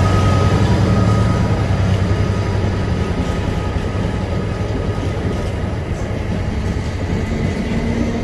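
Freight wagons rattle and clank over the rails.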